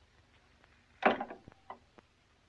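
A door opens with a click.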